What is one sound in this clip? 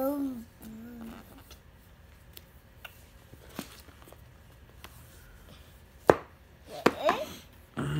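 Pages of a stiff board book are turned and tapped.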